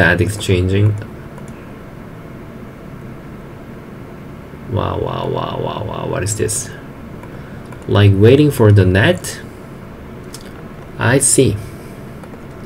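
A young man speaks calmly into a close microphone, in short bursts.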